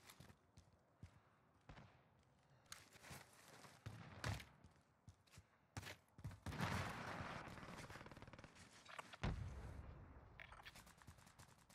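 Footsteps patter quickly on a hard surface.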